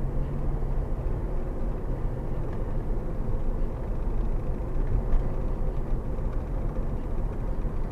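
A car engine hums steadily with road rumble from inside the cabin.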